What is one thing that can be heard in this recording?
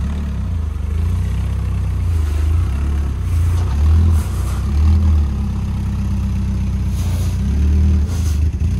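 A truck rolls slowly across grass and dirt.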